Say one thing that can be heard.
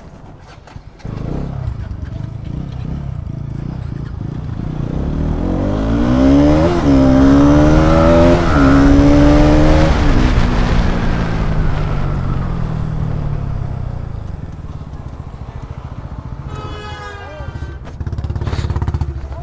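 A motorcycle engine rumbles steadily while riding along a road.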